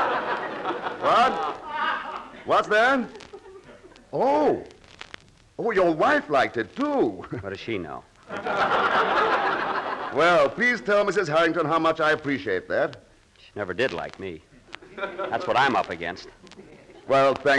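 A man speaks with animation, heard through an old radio broadcast.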